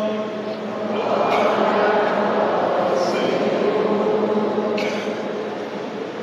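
A crowd sings together in a large echoing hall.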